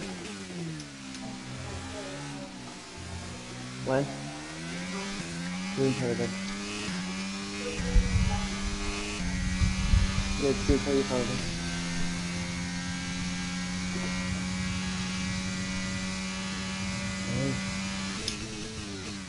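A racing car engine revs up through the gears and drops in pitch when braking.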